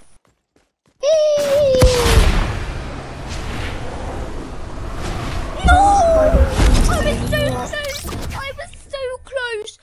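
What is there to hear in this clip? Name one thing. A loud rushing energy blast roars in a video game.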